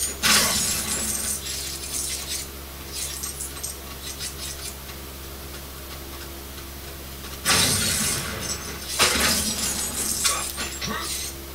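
Explosions boom from a video game on a television.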